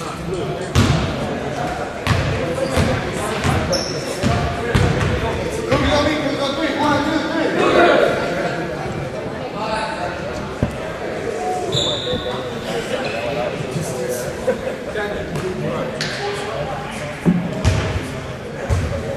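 A crowd of children and adults cheers and chatters in a large echoing gym.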